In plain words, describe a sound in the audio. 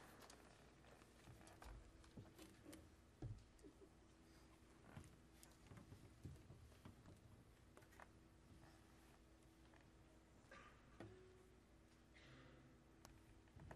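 A cello plays a soft, long held note.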